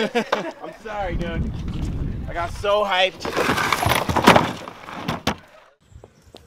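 A plastic wheeled bin rumbles and scrapes over concrete.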